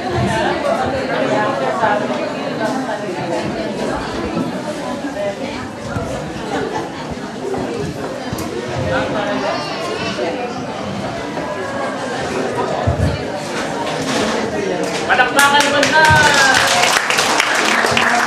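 A young girl speaks into a microphone.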